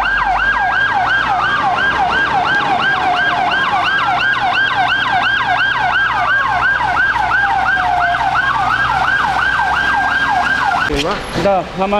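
A fire engine siren wails rapidly and steadily.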